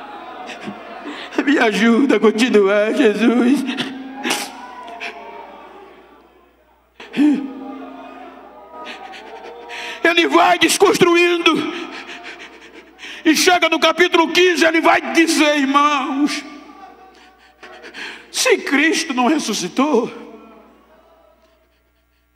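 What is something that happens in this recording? An elderly man preaches loudly and with passion through a microphone, his voice echoing in a large hall.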